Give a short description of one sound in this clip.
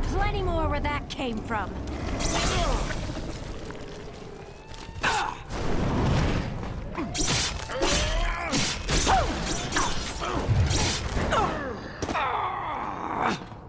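Blades slash and tear into flesh with wet, squelching hits.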